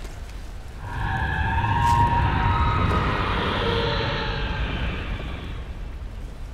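A large machine rumbles and grinds nearby.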